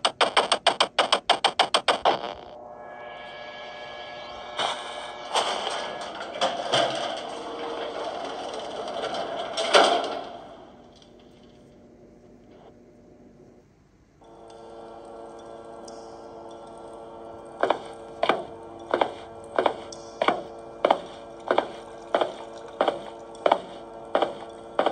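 Electronic game music plays from a small tablet speaker.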